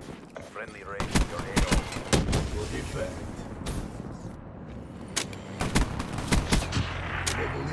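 Rapid gunshots fire in bursts.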